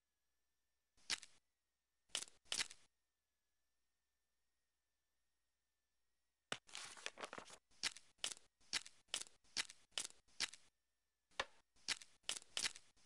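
Jigsaw puzzle pieces click and snap into place.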